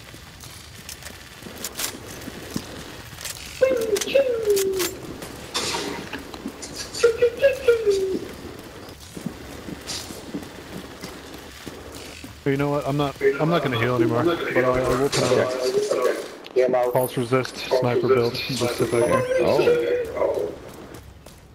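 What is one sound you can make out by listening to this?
Footsteps splash quickly on wet pavement.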